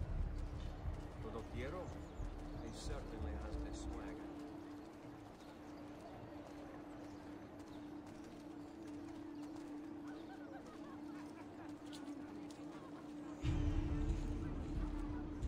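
Footsteps walk slowly on stone paving.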